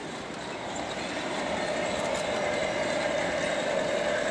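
A model train locomotive hums as it rolls closer and grows louder.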